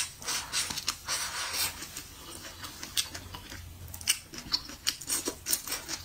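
A young woman slurps and chews food loudly, close to a microphone.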